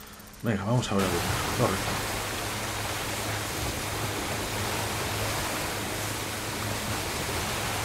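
Water churns and splashes behind a boat.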